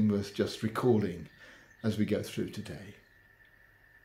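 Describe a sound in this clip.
An elderly man speaks calmly and close to the microphone.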